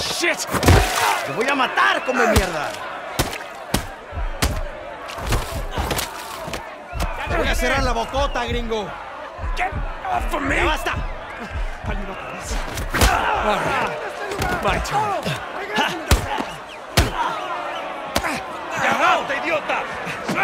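Fists thud heavily as men brawl.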